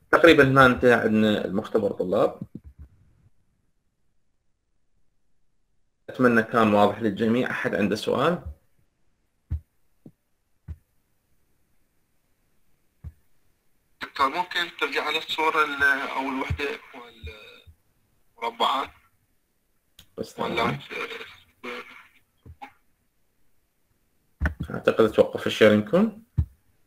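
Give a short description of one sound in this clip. A man speaks through an online call in short bursts.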